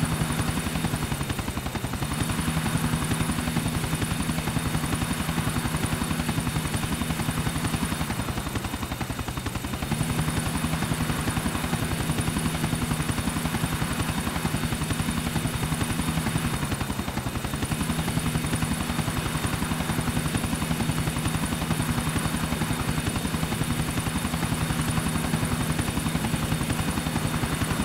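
A helicopter's rotor thumps steadily and its engine drones.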